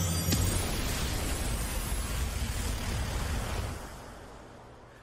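A thunderous crash of lightning rumbles and fades.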